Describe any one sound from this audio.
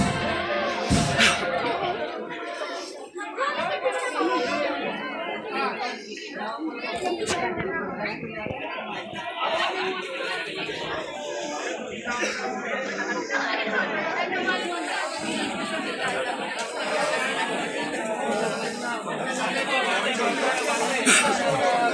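A large crowd of men and women murmurs and chatters outdoors, many voices overlapping.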